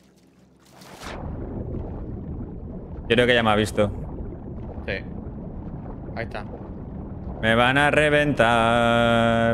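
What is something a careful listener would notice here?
Water splashes and churns as a swimmer moves through it.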